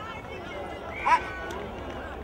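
A referee's whistle blows once, short and sharp.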